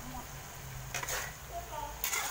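A metal spatula scrapes against a wok.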